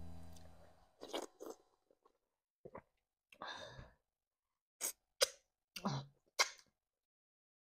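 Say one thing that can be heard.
A young woman chews and smacks her lips loudly close to a microphone.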